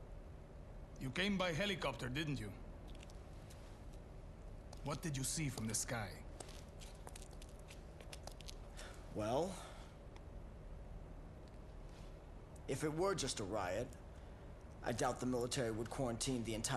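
A man speaks in a low, calm voice, with pauses.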